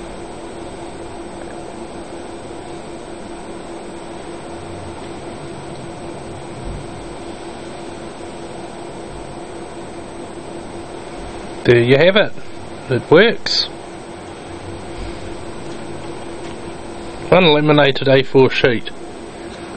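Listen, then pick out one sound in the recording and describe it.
A laminator hums steadily.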